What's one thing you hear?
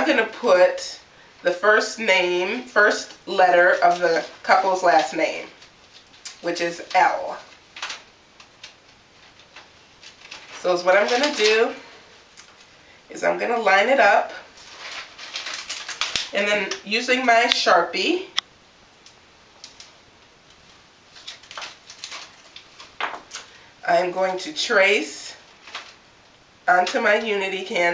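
A woman talks calmly close by, explaining.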